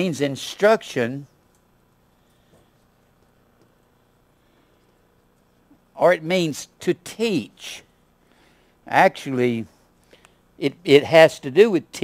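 An older man speaks calmly, as if teaching.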